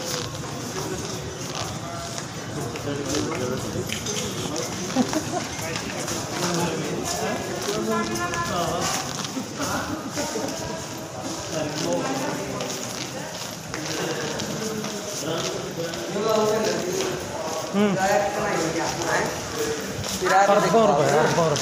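People chatter and murmur nearby in a large echoing hall.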